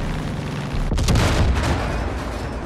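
A small plane crashes with a loud crunching impact.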